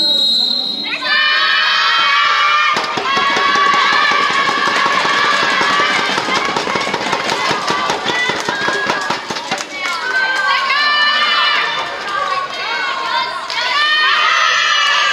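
Young women shout and cheer together in a large echoing hall.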